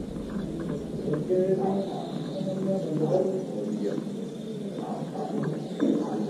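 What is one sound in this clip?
A tennis ball bounces on a hard court a few times.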